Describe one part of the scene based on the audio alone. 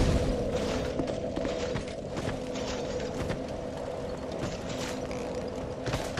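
Armoured footsteps crunch on the ground.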